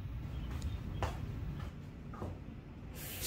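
Footsteps in slippers pad softly across a wooden floor.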